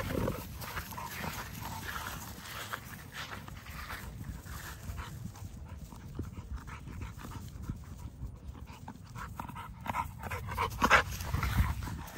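Paws thud and rustle on dry grass.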